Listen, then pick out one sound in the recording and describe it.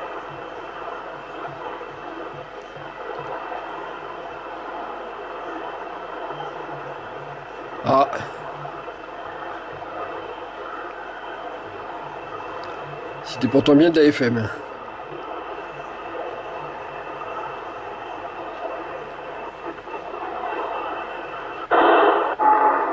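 A radio receiver hisses with steady static from its loudspeaker.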